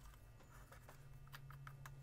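A knife scrapes and cuts into a pumpkin.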